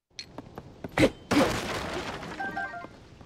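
An explosion bursts with a loud bang.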